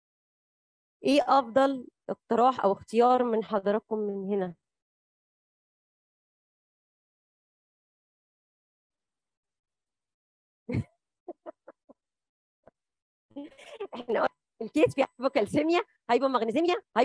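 A woman lectures calmly through a microphone, with long pauses.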